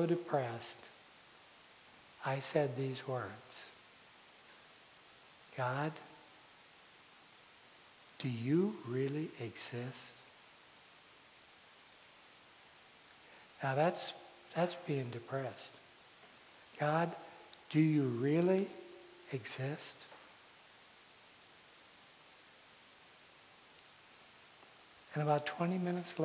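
A man speaks calmly in bursts with pauses, in a large echoing hall.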